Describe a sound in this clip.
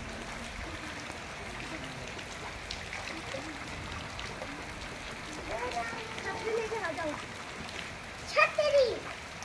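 Bare feet splash through shallow water.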